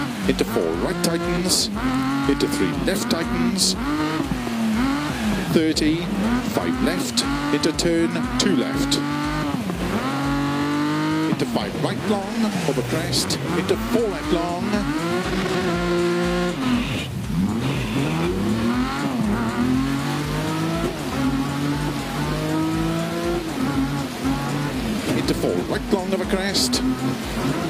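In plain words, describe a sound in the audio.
A car engine revs high and drops as gears shift.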